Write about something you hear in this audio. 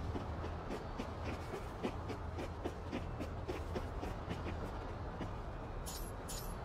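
Footsteps run quickly across a hard surface.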